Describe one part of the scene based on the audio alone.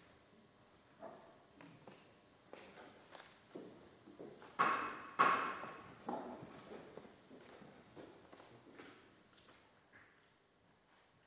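People shuffle and knock against desks in a large echoing hall.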